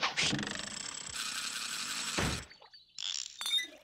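Liquid bubbles and fizzes in a jug.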